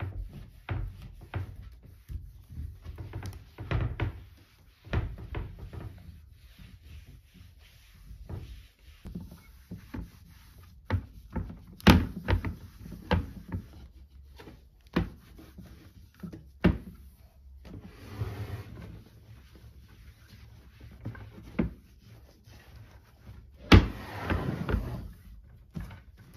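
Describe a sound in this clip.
Knocks and bumps sound against wooden furniture.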